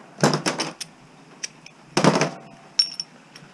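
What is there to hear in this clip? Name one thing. Hard plastic parts clatter and knock together close by.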